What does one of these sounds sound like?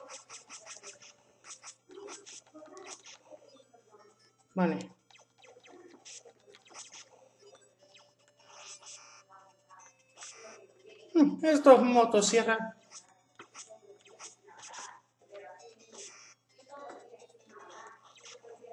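Retro video game sound effects chirp and blip as shots are fired.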